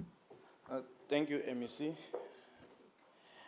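A man speaks into a microphone.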